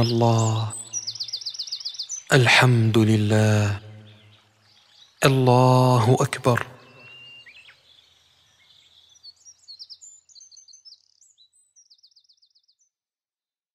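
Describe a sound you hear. A small bird chirps in short high trills.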